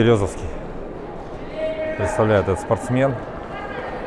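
Running footsteps slap on a track in a large echoing hall.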